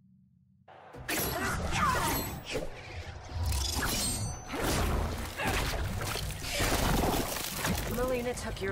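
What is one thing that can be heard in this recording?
Heavy blows land with thuds and whooshes.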